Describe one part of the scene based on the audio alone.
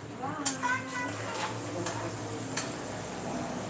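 A metal spoon clinks against a cooking pot.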